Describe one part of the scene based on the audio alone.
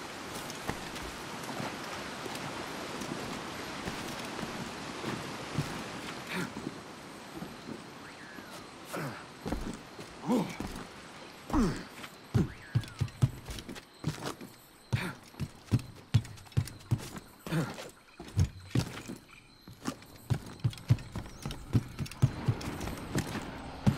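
Footsteps thud quickly on wood and ground.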